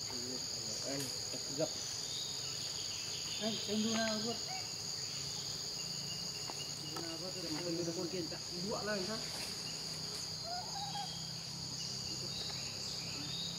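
Leaves rustle as a young monkey climbs through the branches.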